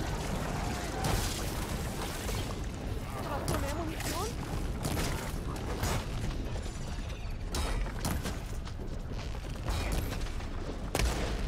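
Explosions burst with loud bangs.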